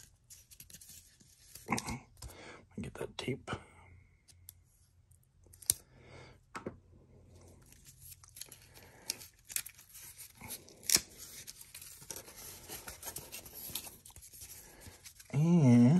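Cards and a cardboard box rustle and tap as they are handled close by.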